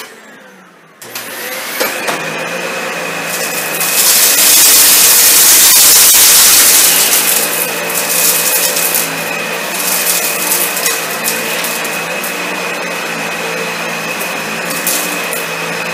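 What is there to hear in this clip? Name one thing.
A vacuum cleaner motor starts up and hums with a steady high whine.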